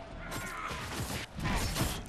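A magical beam blasts with a loud crackling whoosh.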